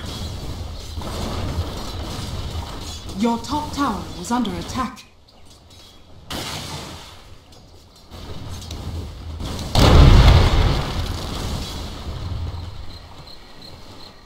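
Weapons and spells clash in a fantasy battle.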